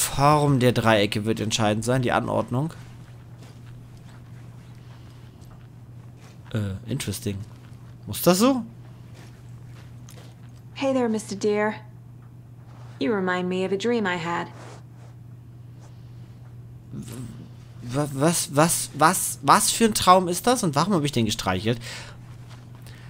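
A woman speaks quietly and calmly, in short phrases with pauses.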